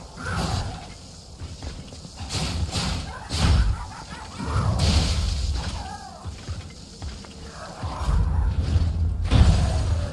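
Blades clash and strike with sharp impacts.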